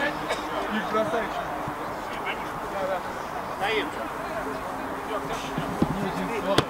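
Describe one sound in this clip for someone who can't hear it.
Men shout and call to each other across an outdoor pitch.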